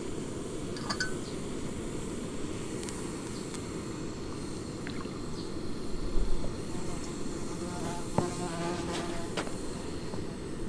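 A gas camping stove roars steadily.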